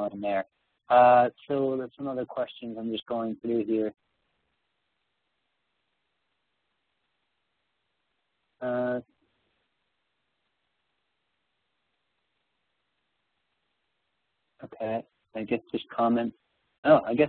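A young man speaks calmly through an online call, with pauses.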